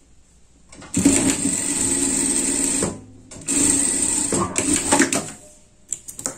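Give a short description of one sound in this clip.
An industrial sewing machine stitches fabric in two short bursts.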